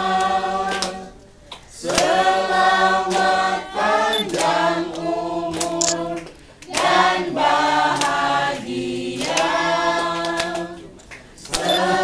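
A group of men, women and children sing together.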